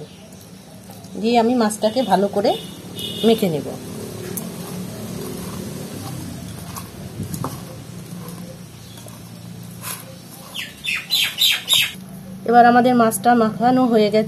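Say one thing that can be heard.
Hands squelch as they mix moist food in a metal bowl.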